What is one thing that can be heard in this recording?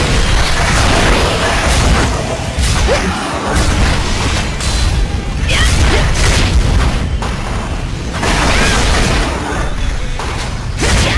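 Swords clash and slash with sharp metallic hits.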